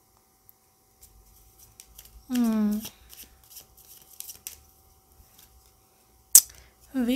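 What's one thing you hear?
Playing cards rustle and slap softly as a deck is shuffled by hand.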